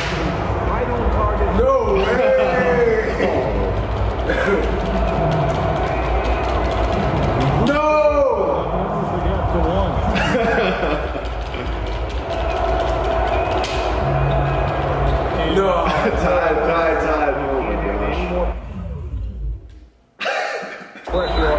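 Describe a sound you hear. Two young men laugh loudly.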